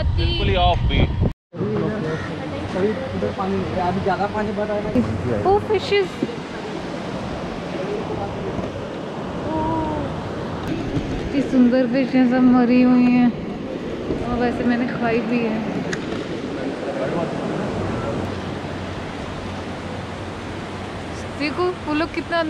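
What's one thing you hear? Waves wash onto a beach.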